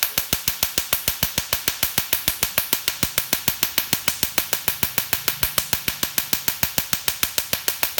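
A laser snaps in rapid, steady clicks.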